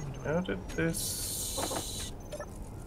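Short electronic game sounds chirp as a menu opens.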